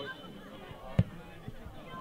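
A ball is kicked with a thud.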